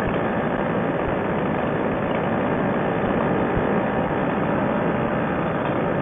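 A paramotor engine roars steadily close by.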